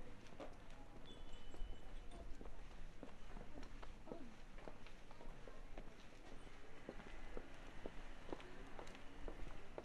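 Footsteps tap on a pavement outdoors.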